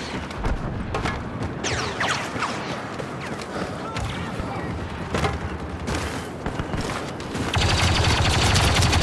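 Blaster shots fire in quick bursts.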